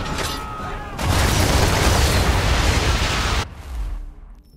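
Explosions burst loudly across the water.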